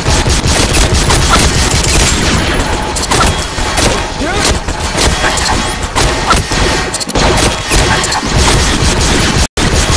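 A gun fires shots in rapid bursts.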